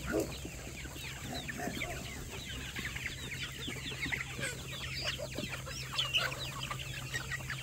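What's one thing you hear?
Chickens cluck and peep nearby outdoors.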